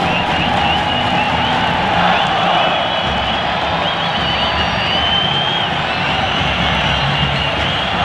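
Shrill whistles blow from the crowd.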